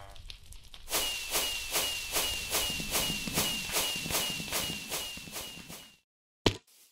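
Fireworks pop and crackle in quick, even bursts.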